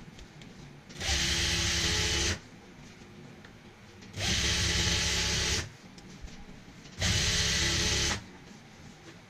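A sewing machine whirs loudly in short bursts.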